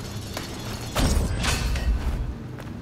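A burst of crackling energy explodes.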